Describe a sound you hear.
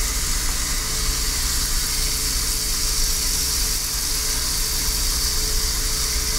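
Bacon sizzles and crackles steadily in a hot frying pan.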